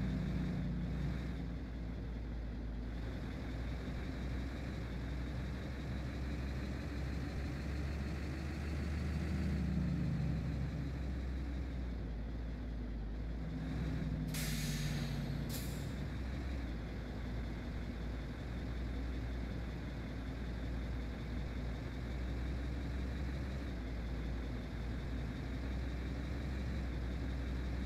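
A truck engine drones steadily.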